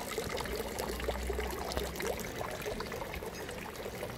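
Water pours from a fountain spout into a basin.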